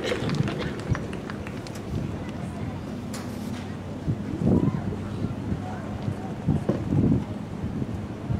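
A marching band plays brass and drums outdoors.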